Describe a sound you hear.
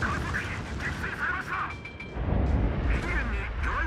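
Heavy naval guns fire with a deep boom.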